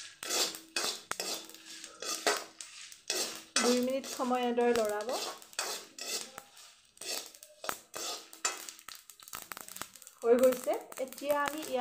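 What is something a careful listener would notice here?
A metal ladle scrapes and clinks against a metal pan.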